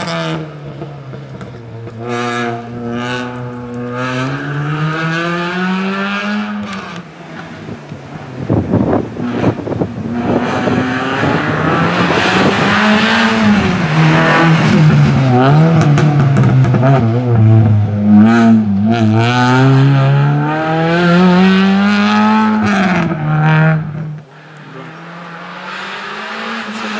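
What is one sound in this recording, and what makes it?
A rally car engine revs hard and roars, rising and falling as the car speeds up and slows for turns.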